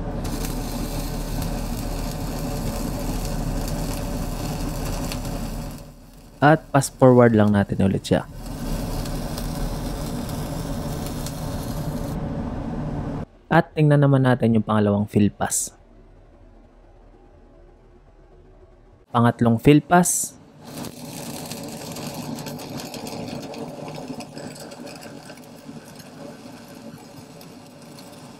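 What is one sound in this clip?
An electric welding arc hisses and crackles steadily.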